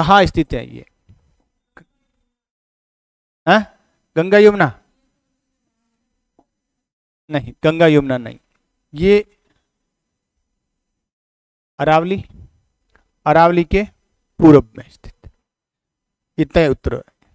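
A middle-aged man speaks calmly into a close microphone, in short bursts with pauses.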